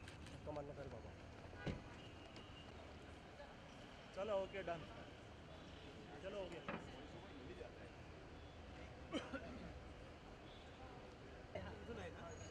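A crowd of men murmurs and calls out nearby.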